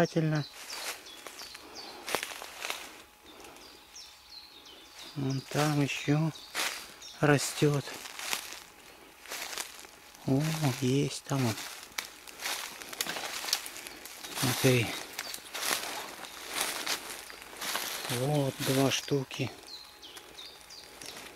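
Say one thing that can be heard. Dry leaves crunch underfoot as someone walks.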